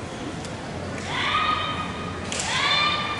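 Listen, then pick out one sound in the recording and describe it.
Young women shout sharp, loud cries.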